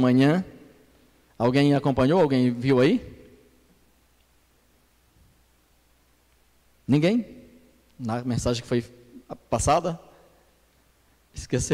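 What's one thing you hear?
A middle-aged man preaches with emphasis through a microphone and loudspeakers, in pauses between phrases.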